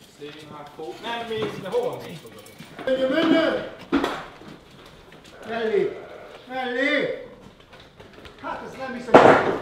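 Sheep bleat loudly and repeatedly close by.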